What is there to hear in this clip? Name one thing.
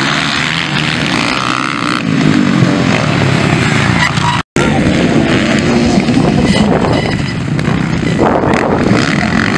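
Dirt bike engines roar and rev loudly.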